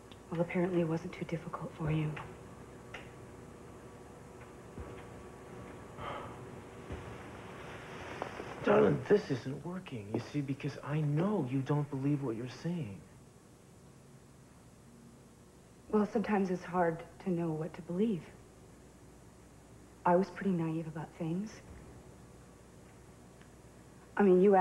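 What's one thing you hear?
A man speaks tensely and with emphasis, close by.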